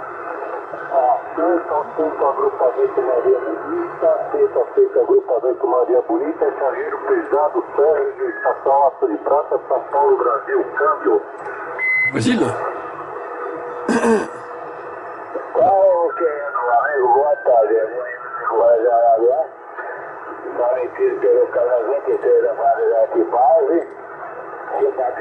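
A man talks through a crackly radio loudspeaker.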